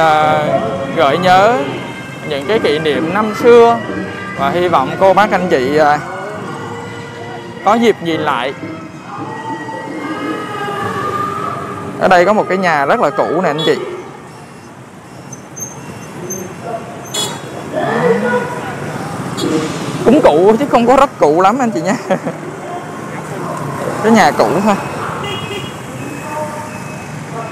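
Motorbike engines hum as they ride past nearby.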